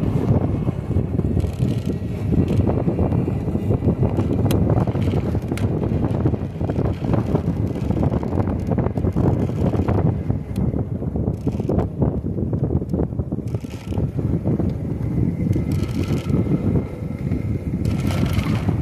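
Wind rushes loudly past a moving bicycle.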